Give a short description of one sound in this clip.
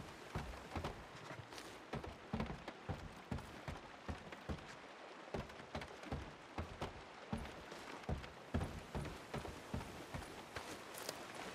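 Heavy footsteps thud on hollow wooden boards.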